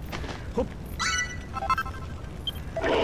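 A short bright electronic jingle chimes.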